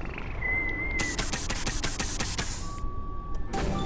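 Air hisses in bursts as a tyre is pumped up.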